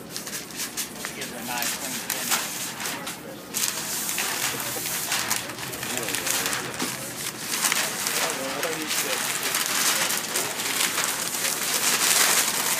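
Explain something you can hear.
Plastic film crinkles and rustles as it is handled.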